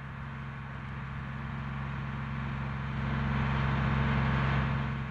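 A bus engine hums steadily in the distance and grows slightly louder.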